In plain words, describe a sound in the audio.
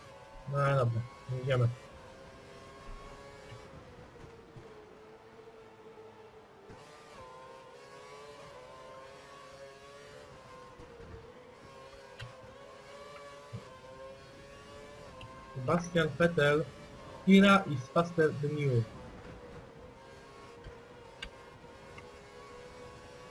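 A racing car engine whines steadily at high revs, rising and falling as the car shifts gears.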